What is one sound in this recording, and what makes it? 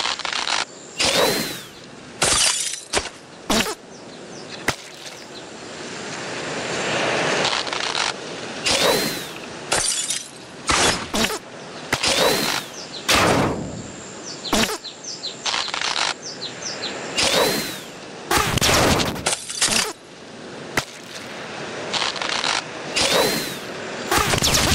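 An arrow whooshes through the air, again and again.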